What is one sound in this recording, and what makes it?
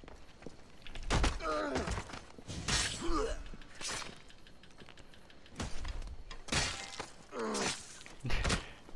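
A blade stabs into a body with heavy thuds.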